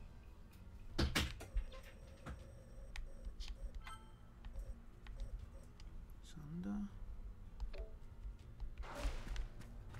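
Short game menu clicks tick now and then.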